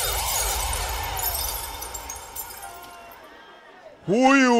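A crowd cheers and applauds.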